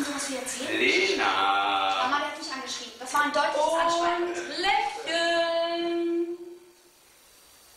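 A group of people sing together with animation, close by.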